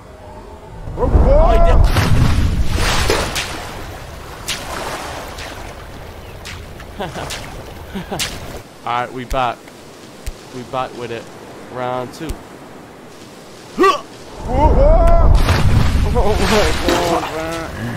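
Water splashes loudly as a body plunges in.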